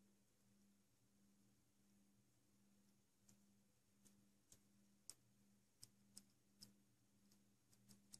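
A small metal tool scrapes lightly on plastic.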